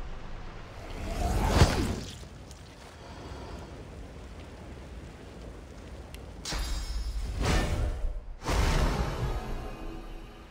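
A spell bursts with a loud whoosh.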